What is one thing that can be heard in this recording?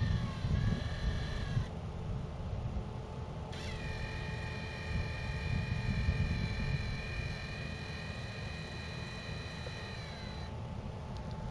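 Spinning cutter blades whine at a high pitch.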